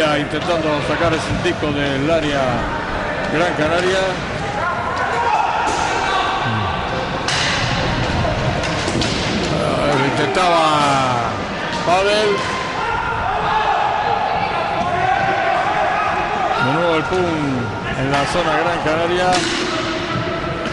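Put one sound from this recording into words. Roller skates whir and rumble across a wooden floor in a large echoing hall.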